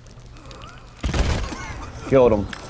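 A cannon fires with a loud, sudden boom.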